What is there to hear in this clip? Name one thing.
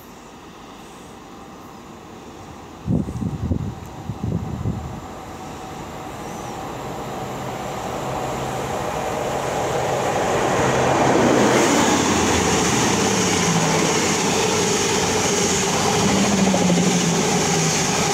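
A train rolls along the rails into the station.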